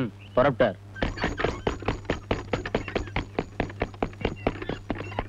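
Horse hooves clatter quickly and steadily.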